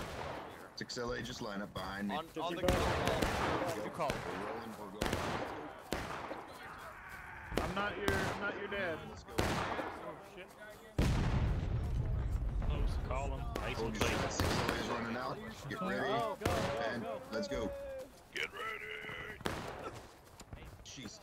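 Men shout in the distance.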